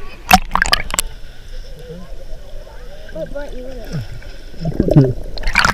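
Water gurgles and rumbles, heard muffled from below the surface.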